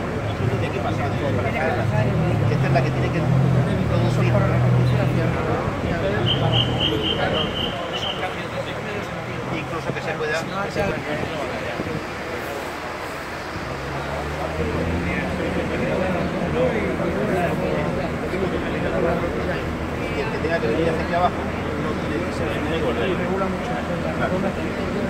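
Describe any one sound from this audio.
A man speaks calmly outdoors.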